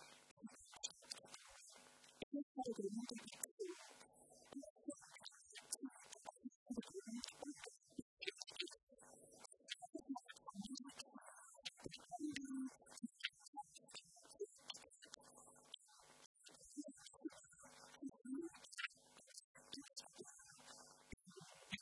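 A middle-aged woman speaks with animation to an audience.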